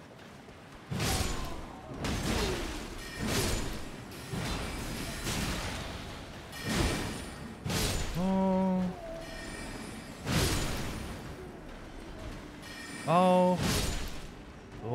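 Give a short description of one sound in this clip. Weapons clash and strike in heavy blows.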